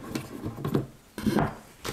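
A knob clicks as it is turned.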